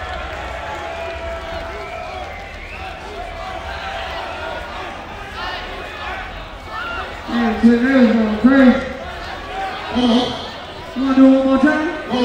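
A large crowd cheers and sings outdoors.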